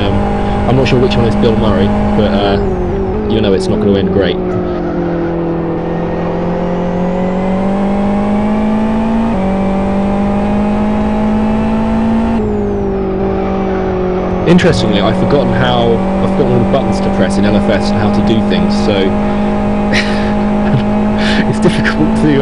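A racing car engine roars steadily at high revs, its pitch dipping and rising with gear changes.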